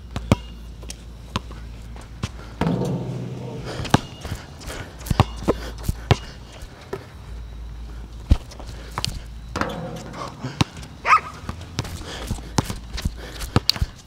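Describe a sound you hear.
A basketball bounces on an outdoor court with sharp thuds.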